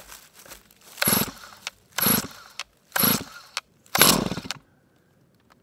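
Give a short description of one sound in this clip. A chainsaw's starter cord is yanked several times.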